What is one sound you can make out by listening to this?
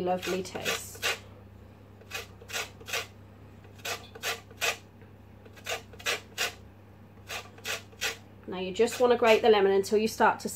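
A grater rasps against a lemon in quick, repeated strokes.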